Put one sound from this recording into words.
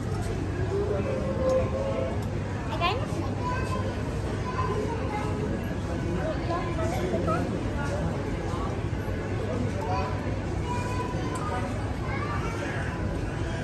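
A young boy speaks and laughs softly close by.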